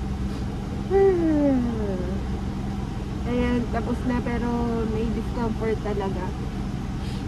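A young woman vocalizes close by in long, gliding tones.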